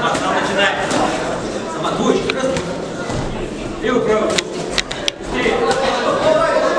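Boxing gloves slap sharply against a boxer.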